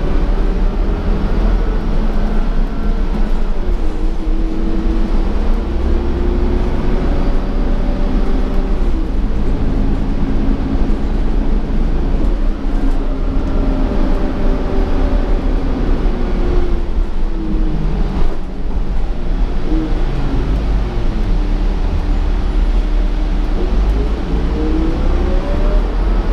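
A bus cabin rattles and creaks over the road.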